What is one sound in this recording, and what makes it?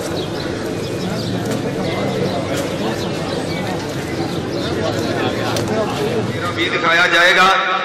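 A large crowd murmurs outdoors.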